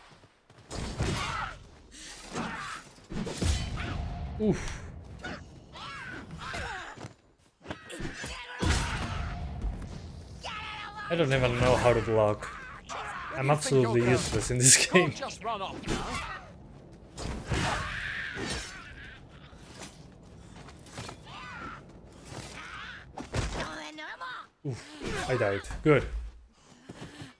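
Swords clash and thud in a game fight.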